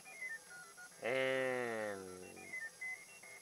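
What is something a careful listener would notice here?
An electronic game tone sounds loudly and slides downward.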